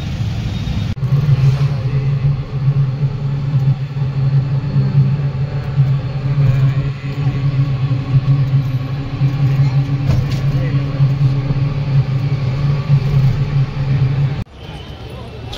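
A vehicle motor hums steadily while riding.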